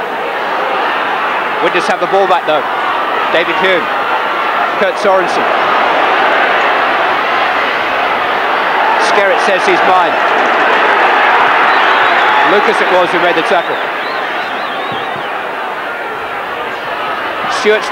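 A large crowd roars steadily outdoors.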